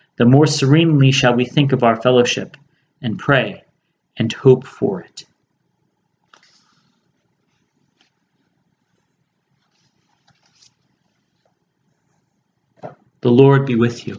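A young man speaks calmly and close to a microphone, with pauses.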